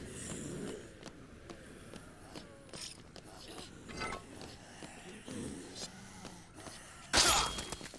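Footsteps run on a hard floor.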